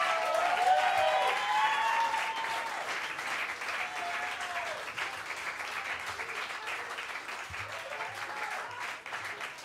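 People in a crowd cheer and whoop.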